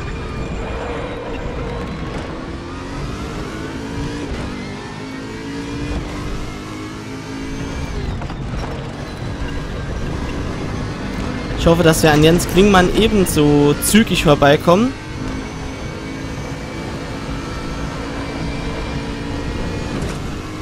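A racing car engine roars steadily, rising and falling in pitch as it shifts gears.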